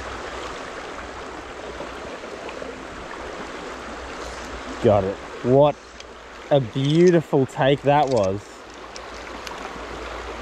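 A shallow stream trickles and babbles steadily nearby.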